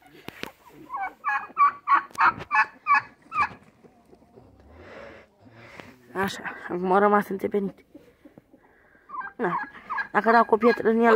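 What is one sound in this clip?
A turkey gobbles loudly in rapid, warbling bursts.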